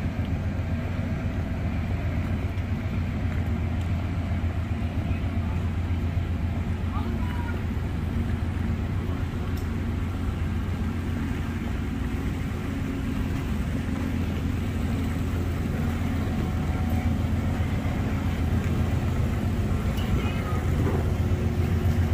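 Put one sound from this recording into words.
A train's engine idles nearby with a steady low rumble.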